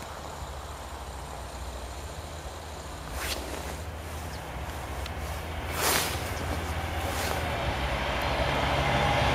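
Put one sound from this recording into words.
A train approaches along the tracks with a low rumble that grows louder.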